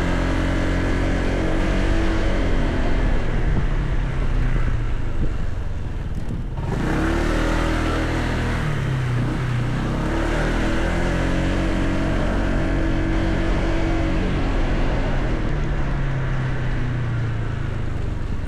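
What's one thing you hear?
Wind rushes past a riding scooter.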